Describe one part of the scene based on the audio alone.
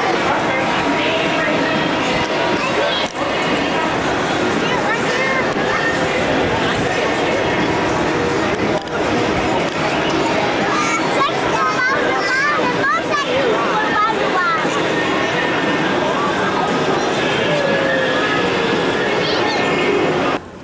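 A large outdoor crowd chatters and murmurs below.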